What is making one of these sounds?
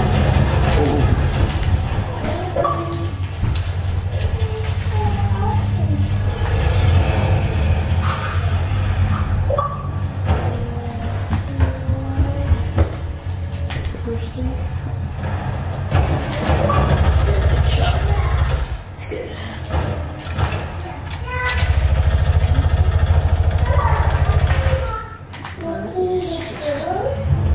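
A young boy talks into a headset microphone.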